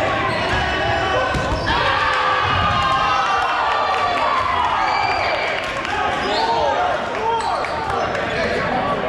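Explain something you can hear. Balls bounce and thud on a wooden floor.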